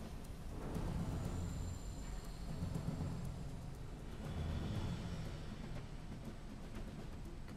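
A torpedo churns through water with a low, steady rumble.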